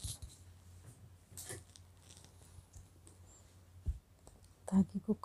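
Yarn and knitted fabric rustle softly as hands handle them.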